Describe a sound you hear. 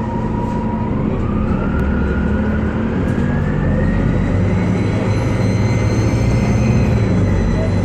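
A bus transmission whines, rising in pitch as the engine revs up.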